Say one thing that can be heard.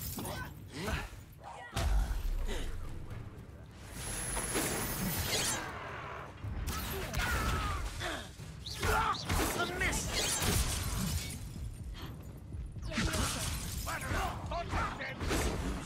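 Magic spells crackle and blast in quick bursts.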